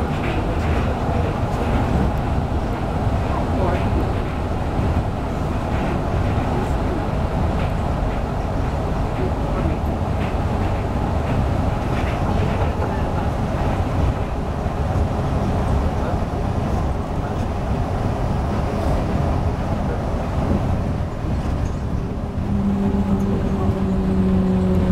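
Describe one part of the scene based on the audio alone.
A train rumbles steadily along its track, with rattles and clacks.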